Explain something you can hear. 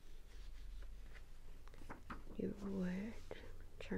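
A notebook cover is flipped open with a papery rustle.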